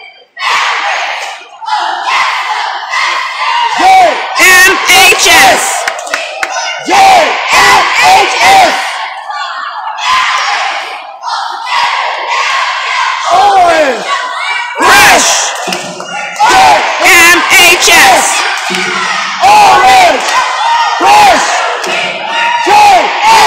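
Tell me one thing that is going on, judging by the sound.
A crowd cheers and whoops loudly in a large echoing hall.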